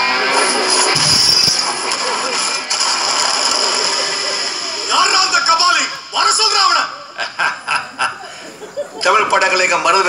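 A boy sings loudly into a microphone, heard through loudspeakers in an echoing hall.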